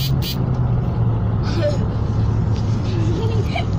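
A young child sips from a drink can.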